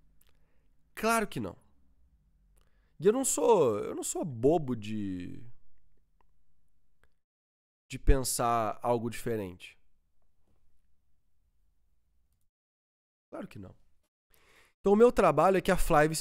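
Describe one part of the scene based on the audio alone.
A young man speaks calmly and with animation into a close microphone, with pauses.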